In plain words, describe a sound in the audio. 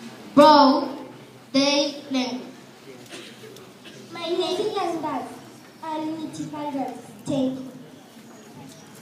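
A man speaks over a loudspeaker.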